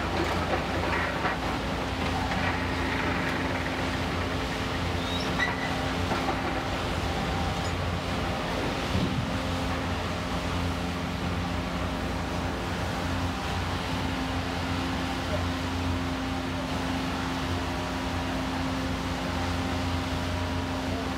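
A demolition excavator's diesel engine rumbles steadily.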